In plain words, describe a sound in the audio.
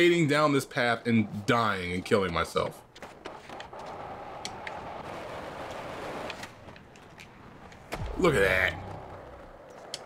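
Skateboard wheels roll along asphalt with a steady rumble.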